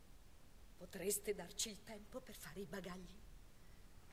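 A woman speaks calmly through a speaker.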